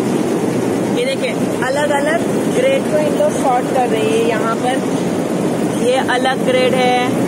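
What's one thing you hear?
A young man speaks close up with animation.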